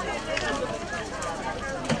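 Water trickles from a spout into a jug.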